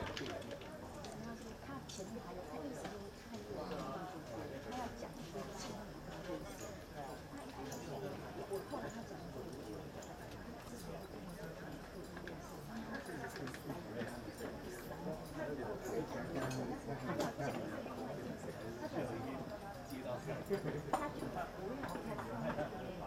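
Horse hooves thud softly on sand at a steady walk.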